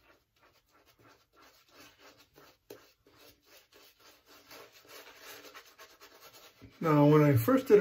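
A shaving brush swishes and scrubs lather onto a face.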